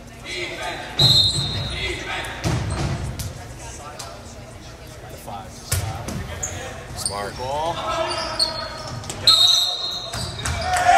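A referee's whistle blows sharply in a large echoing gym.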